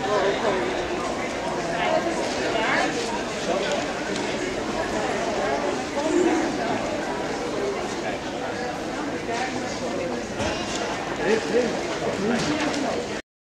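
Many voices of passers-by chatter in a busy crowd outdoors.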